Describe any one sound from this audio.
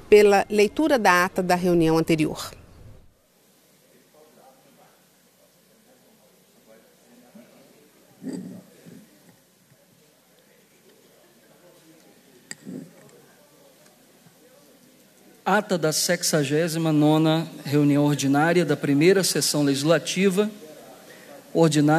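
A man speaks into a microphone over loudspeakers in a large echoing hall, reading out steadily.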